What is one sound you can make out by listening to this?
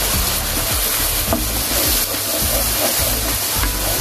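A wooden spoon scrapes and stirs against a pan.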